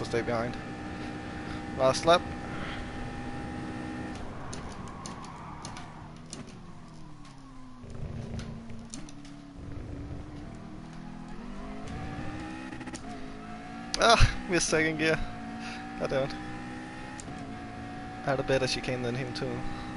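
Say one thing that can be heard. A racing car engine roars, its pitch rising through the gears and dropping as it brakes for corners.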